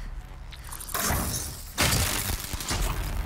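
A spear strikes a metal machine with a loud crash.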